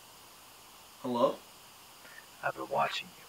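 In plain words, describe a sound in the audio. A young man speaks quietly into a phone.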